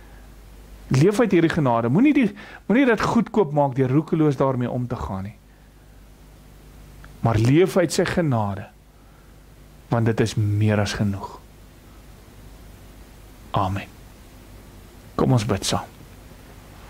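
A man speaks calmly and slowly into a microphone, pausing between phrases.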